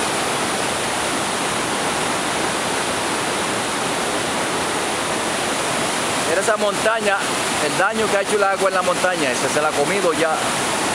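A swollen river rushes and roars loudly over rocks.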